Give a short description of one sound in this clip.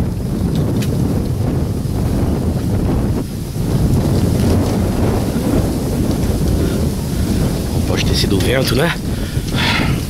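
Wind rustles through bamboo leaves outdoors.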